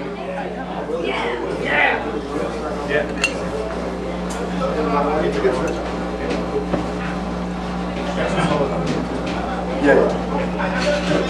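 A live band plays loudly in a small room.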